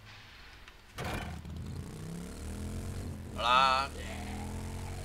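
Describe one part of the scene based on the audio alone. A motorbike engine starts and rumbles steadily.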